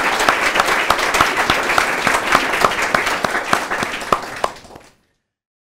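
A man claps his hands in applause, which fades away.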